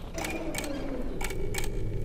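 A mechanical panel arm whirs and clanks as it moves.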